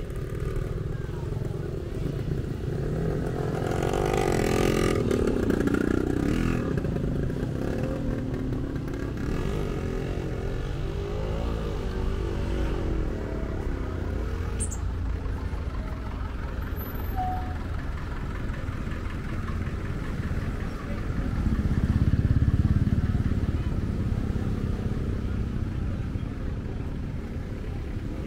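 Vehicles drive past on a wet road.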